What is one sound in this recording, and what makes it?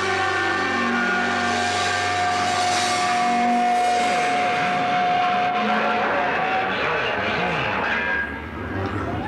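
A rock band plays loudly through amplifiers.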